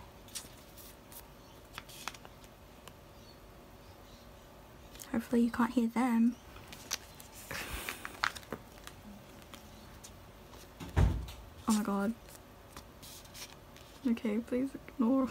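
Plastic sleeves crinkle and rustle as cards slide in and out.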